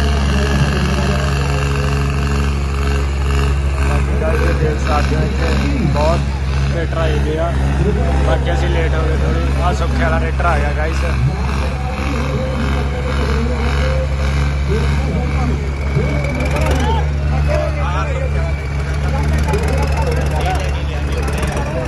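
Tractor engines rumble steadily and loudly nearby.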